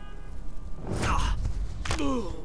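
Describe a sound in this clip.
A man grunts as he is grabbed in a sudden scuffle.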